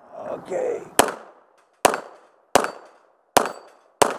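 A 9mm semi-automatic pistol fires single shots outdoors.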